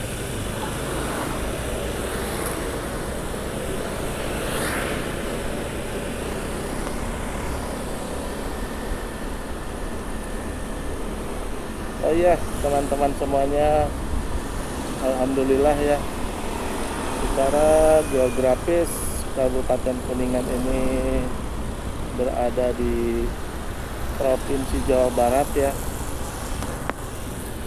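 Traffic of scooters and cars passes on a street.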